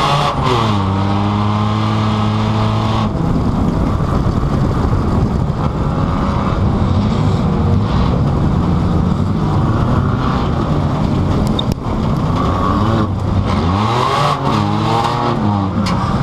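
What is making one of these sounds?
A car engine roars and revs loudly up and down, heard from inside the car.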